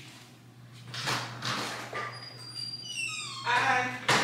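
A front door unlatches and swings open.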